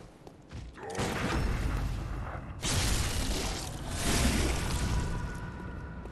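Blades slash and thud against flesh in a fight.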